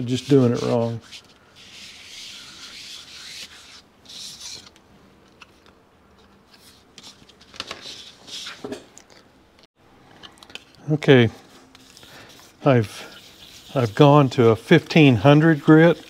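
A metal dial face is rubbed on wet sandpaper.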